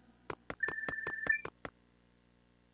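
A video game plays a quick run of bright chiming beeps.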